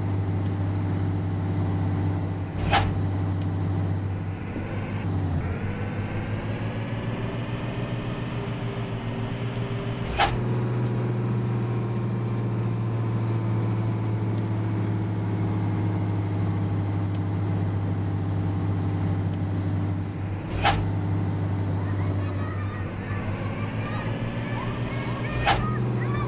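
A bus engine drones steadily, rising and falling in pitch as it speeds up and slows.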